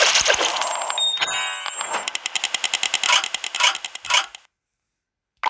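A bright electronic chime plays in quick pulses.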